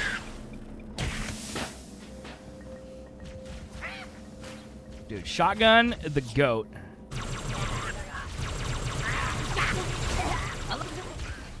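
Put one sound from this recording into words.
Electric blasts crackle and hiss in a game.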